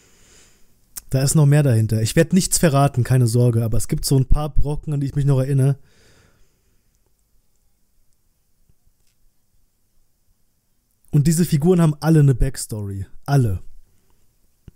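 A man speaks calmly and close into a microphone, in short bursts with pauses.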